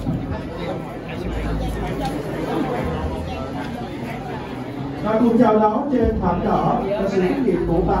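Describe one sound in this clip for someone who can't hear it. Women talk and greet each other up close.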